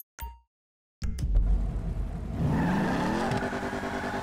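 A car engine starts and revs up, then idles with a low rumble.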